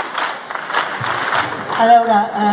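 A woman speaks into a microphone through a loudspeaker.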